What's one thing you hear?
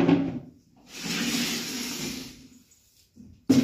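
Water splashes onto a floor from a mug.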